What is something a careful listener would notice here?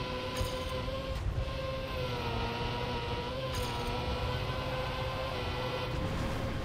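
A racing car engine whines steadily at high speed.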